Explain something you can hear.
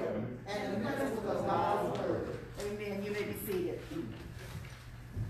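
A woman speaks into a microphone in an echoing hall.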